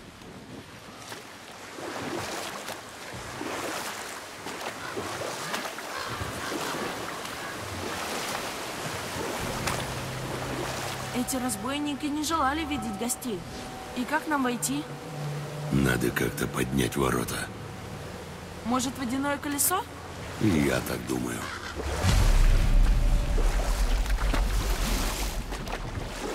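Oars splash in water.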